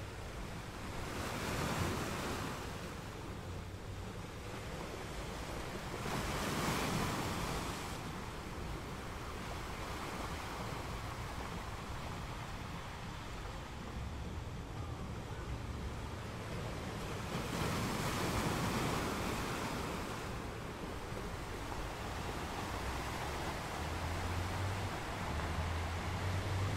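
Sea water washes and hisses steadily over a rocky shore.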